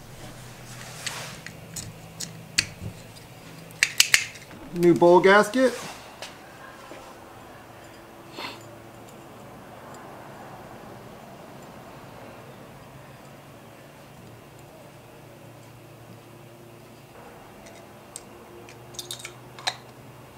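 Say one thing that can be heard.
Small metal parts click and tap together as they are handled.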